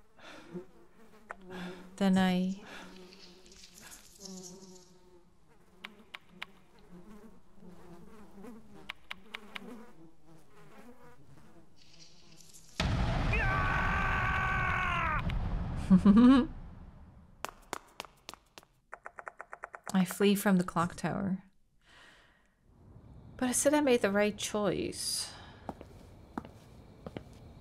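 A young woman talks into a close microphone with animation.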